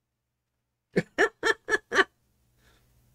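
A middle-aged man laughs in short bursts close by.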